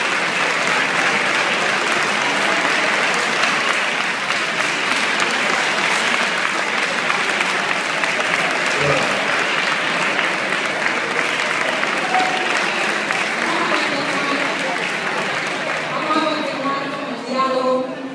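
A large crowd in an echoing hall talks, shouts and murmurs loudly.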